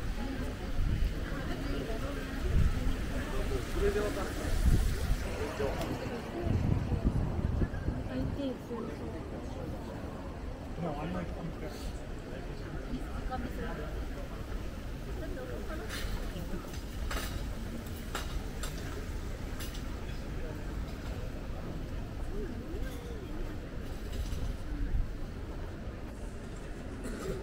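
Young women chat quietly nearby outdoors.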